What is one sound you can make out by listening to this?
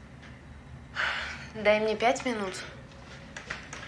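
A young woman speaks softly and close.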